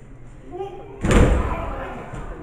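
A wrestler slams onto a ring mat with a loud thud.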